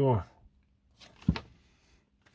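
Paper pages rustle as a small booklet is handled and flipped.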